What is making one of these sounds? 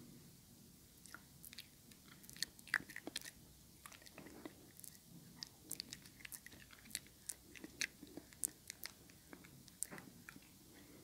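A brush taps and brushes softly near the microphone.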